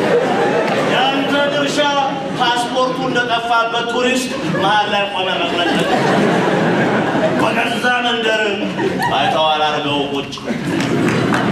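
A man sings expressively.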